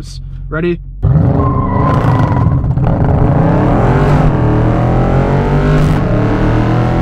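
A car engine roars loudly as it accelerates, its pitch rising.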